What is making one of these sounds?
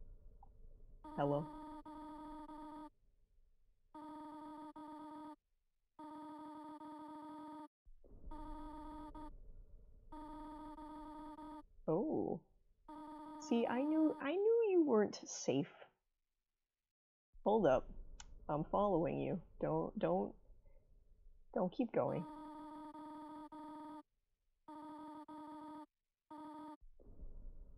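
Rapid electronic beeps chatter in short bursts from a video game.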